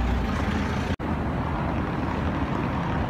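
A car drives past over cobblestones.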